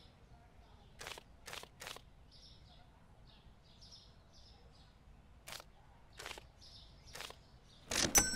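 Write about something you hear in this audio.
Bills and coins click into a cash drawer.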